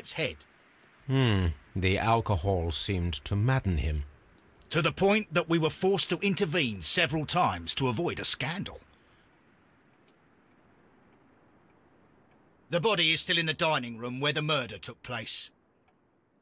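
A younger man speaks in a smooth, measured voice.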